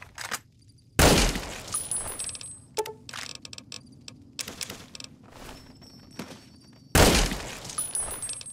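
A rifle fires loud shots that echo away.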